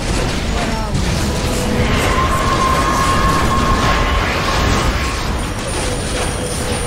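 Swords clash and spells burst in a busy fantasy battle.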